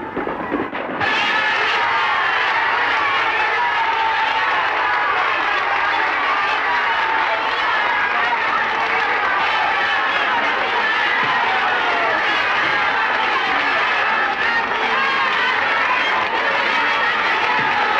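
A crowd of women and men cheers and shouts excitedly.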